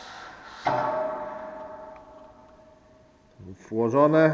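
A metal bar rings as it strikes concrete and slowly fades.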